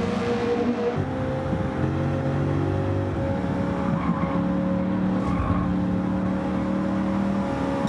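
Several racing cars whoosh past close by.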